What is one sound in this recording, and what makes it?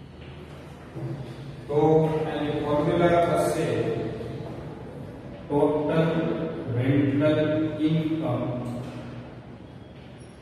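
A man speaks in a lecturing tone, close by.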